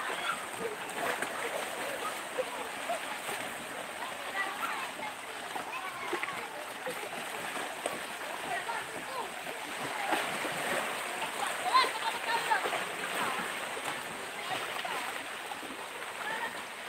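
Small waves lap gently against rocks on the shore.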